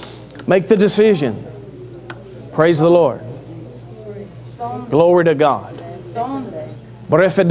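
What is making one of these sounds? A man speaks loudly and passionately into a microphone in a large echoing hall.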